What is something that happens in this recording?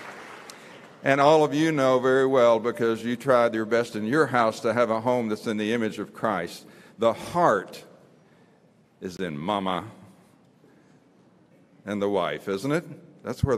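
An elderly man speaks calmly through a microphone and loudspeakers, with pauses.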